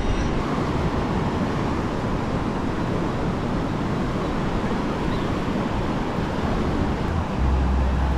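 Waves wash steadily onto a sandy shore.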